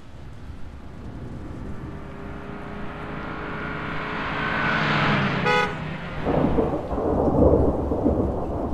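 A car drives past on a wet road, tyres hissing.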